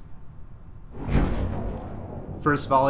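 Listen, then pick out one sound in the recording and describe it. A parachute bursts open with a rushing whoosh.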